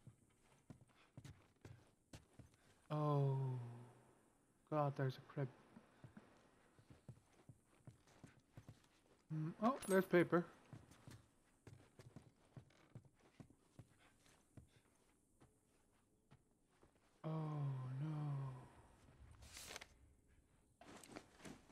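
Footsteps thud softly on wooden floorboards.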